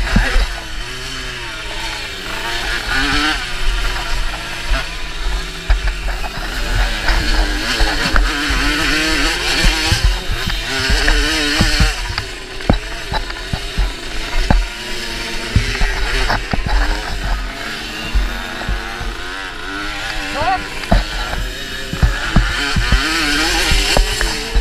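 A dirt bike engine revs and roars up close, rising and falling in pitch.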